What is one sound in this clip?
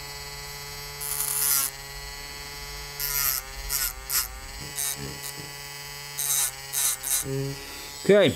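A spinning cutting disc grinds in short bursts against a hard material.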